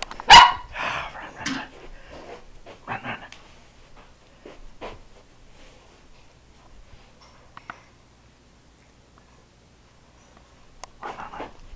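A cat's paws patter and scratch softly on a carpet.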